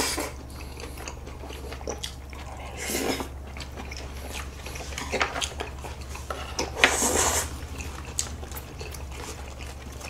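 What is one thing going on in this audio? Young men chew food close to a microphone.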